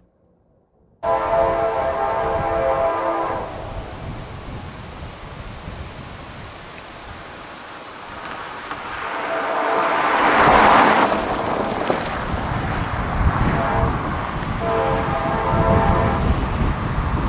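A train horn blows loudly in long blasts.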